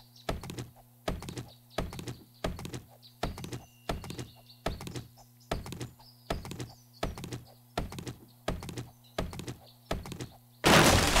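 A stone axe chops into a tree trunk with rhythmic thuds.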